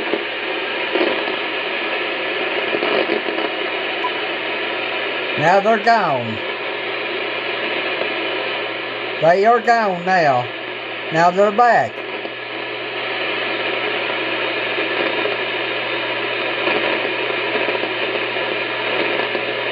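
Static hisses steadily from a radio receiver.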